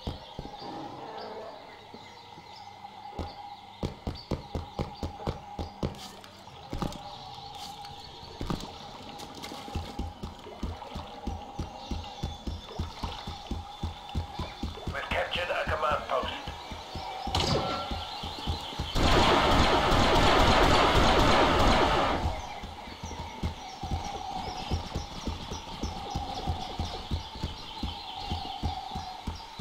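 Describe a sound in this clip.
Footsteps thud quickly and steadily.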